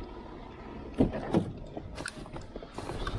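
A car door handle clicks and clunks.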